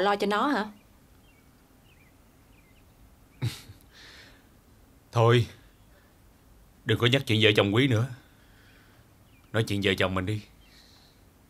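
A man speaks softly and calmly nearby.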